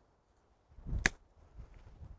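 A golf club strikes a ball with a crisp click.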